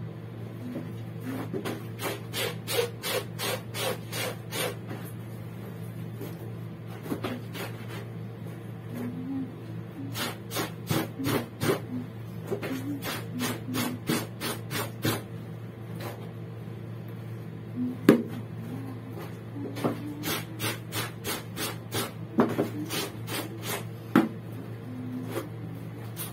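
Wet clothes slosh and squelch as they are scrubbed in a tub of water.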